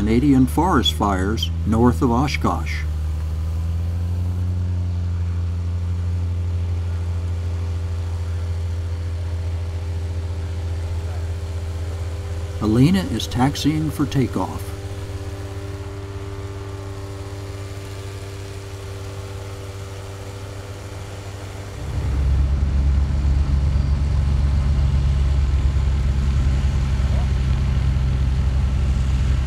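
A small propeller aircraft engine runs with a steady low drone nearby.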